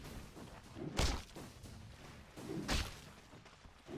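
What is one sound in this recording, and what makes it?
Sharp magical blasts whoosh and crash.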